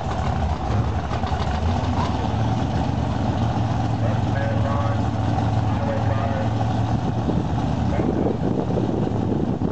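Drag racing engines idle with a loud, deep, lumpy rumble close by.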